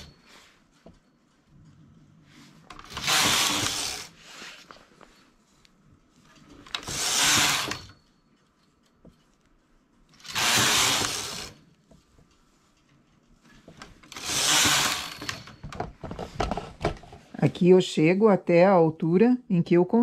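Metal needles click softly as a hand tool pushes them.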